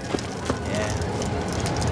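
A bonfire crackles.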